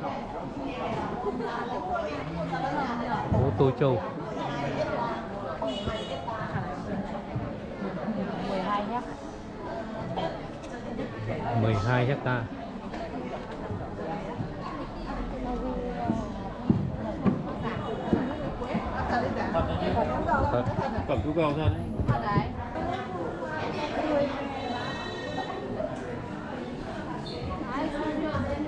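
A crowd of men and women chatter all around, close by, outdoors.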